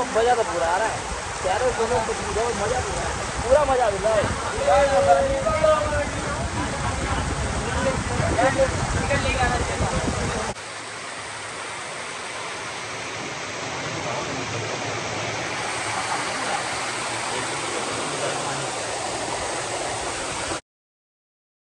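A waterfall splashes and rushes steadily.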